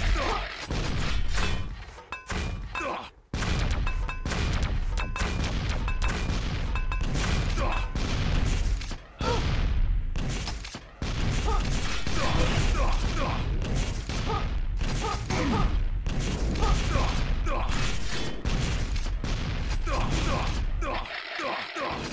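Guns fire rapid shots.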